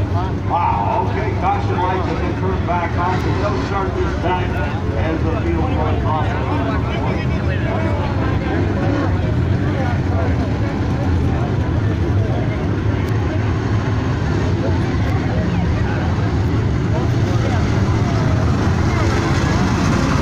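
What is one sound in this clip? A grandstand crowd of men and women chatters outdoors.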